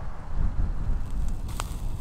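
A small fire crackles.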